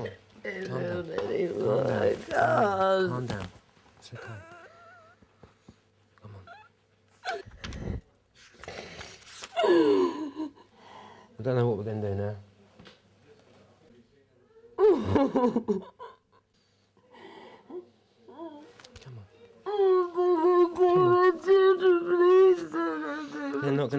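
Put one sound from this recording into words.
A woman sobs and wails.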